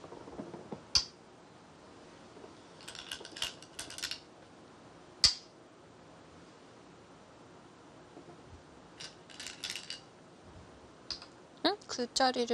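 A stone clicks sharply onto a wooden game board.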